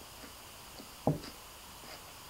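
A bowl knocks on a table.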